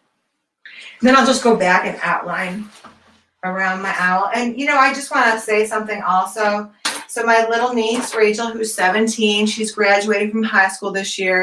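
A woman talks with animation through a microphone.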